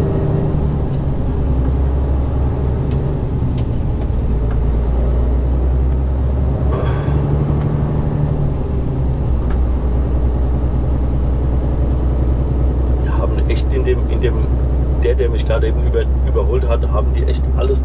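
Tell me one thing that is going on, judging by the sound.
A truck engine hums low and steady from inside the cab.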